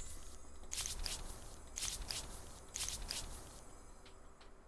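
Soft whooshes sound as menu cards slide past one after another.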